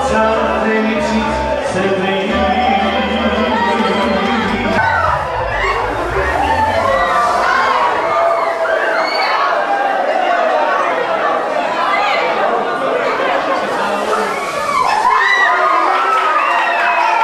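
A large crowd of men and women talks and shouts in a loud, echoing hall.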